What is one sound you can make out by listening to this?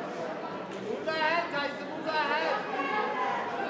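Spectators shout loudly in encouragement.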